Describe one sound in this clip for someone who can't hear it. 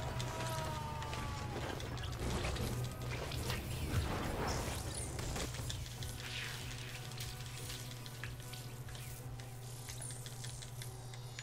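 Energy blasts and explosions boom and crackle in quick bursts.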